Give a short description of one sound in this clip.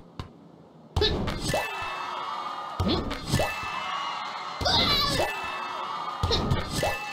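A ball is kicked with a soft thump, again and again.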